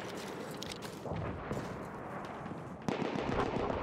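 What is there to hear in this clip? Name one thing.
Gunshots crack in the distance.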